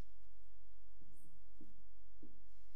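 A young woman shuffles and rises from a wooden floor.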